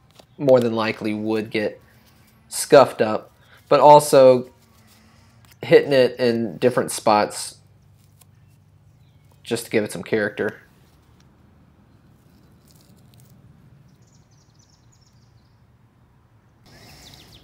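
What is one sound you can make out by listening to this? Metal pistol parts click and clack as they are handled.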